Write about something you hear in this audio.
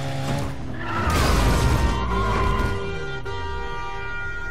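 A car crashes into another car with a loud thud.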